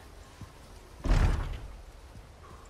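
A heavy wooden gate creaks and bangs open.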